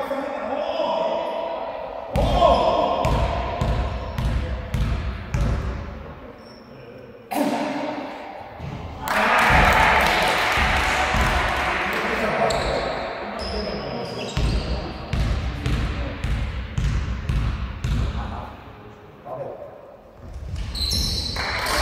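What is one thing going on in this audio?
Basketballs bounce on a wooden floor, echoing through a large hall.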